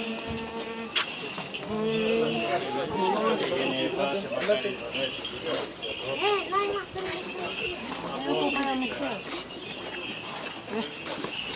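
A group of men and boys chatter and call out nearby.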